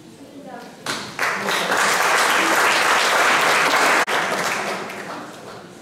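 People applaud loudly.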